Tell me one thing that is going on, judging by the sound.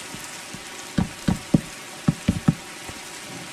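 Wooden blocks are placed one after another with short knocks.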